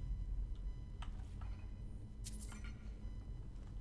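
Gold coins clink as they are picked up.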